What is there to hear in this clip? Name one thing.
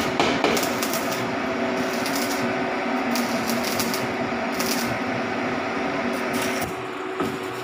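An electric welder crackles and sizzles steadily.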